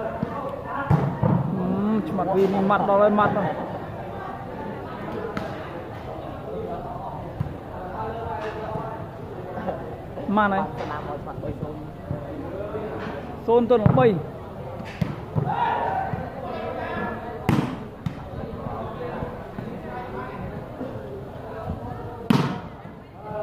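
Hands slap a volleyball.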